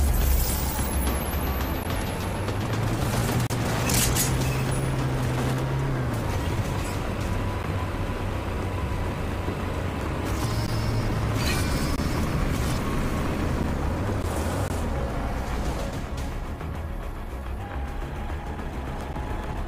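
Tyres crunch over rough gravel.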